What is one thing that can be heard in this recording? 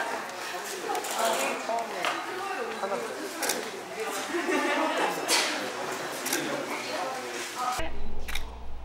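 Young women chatter and laugh excitedly nearby.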